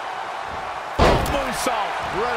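A heavy body slams onto a wrestling mat with a loud thud.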